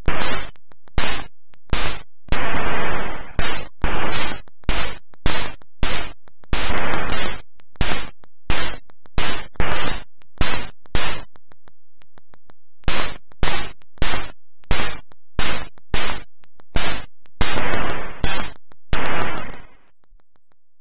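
Retro video game shots fire in rapid, sharp electronic bursts.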